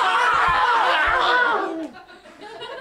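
A man shouts loudly and with strain close by.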